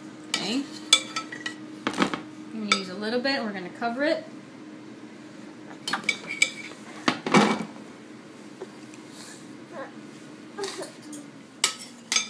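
A metal spoon scrapes and clinks against a ceramic pot.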